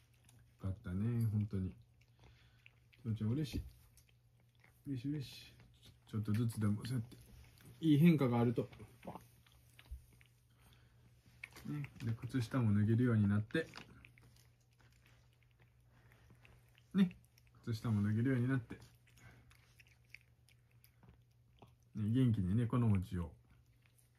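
A cat chews and laps wet food from a bowl.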